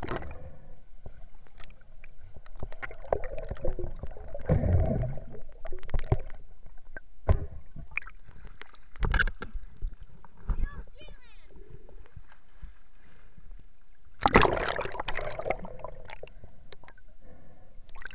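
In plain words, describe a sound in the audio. Muffled bubbling and rumbling sound underwater.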